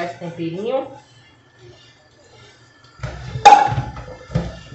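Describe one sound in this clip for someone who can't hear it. A metal pan clinks against a plastic bowl.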